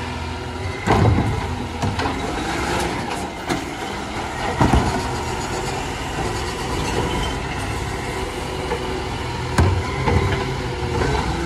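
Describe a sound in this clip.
Bins bang and thud against a garbage truck.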